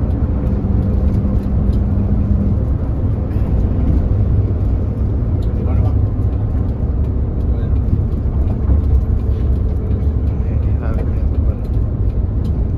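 Tyres roar on the road at speed.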